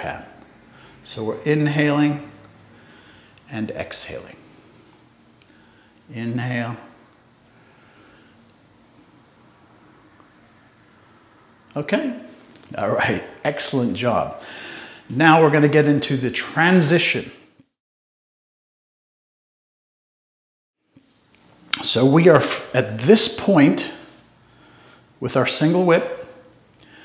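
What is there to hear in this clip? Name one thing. A middle-aged man speaks calmly and clearly into a close microphone, with pauses.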